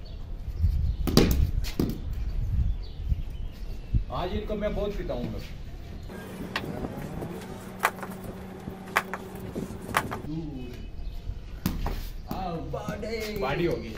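A bat strikes a ball with a sharp crack.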